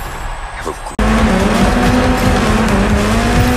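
A racing vehicle's engine whines at high speed.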